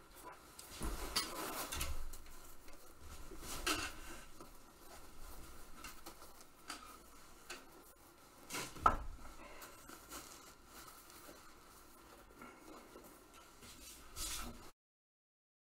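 Clothing rustles and brushes against the microphone up close, with bumps and thumps.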